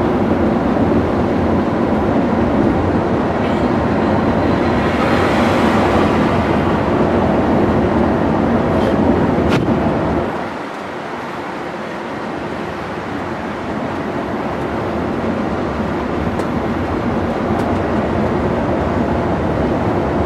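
A vehicle's engine hums steadily as it drives along a highway.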